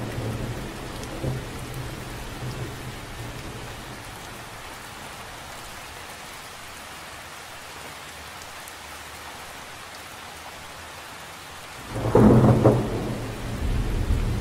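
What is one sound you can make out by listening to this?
Rain patters softly on the surface of a lake.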